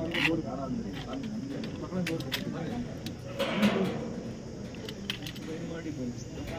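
Several men talk over one another nearby, outdoors.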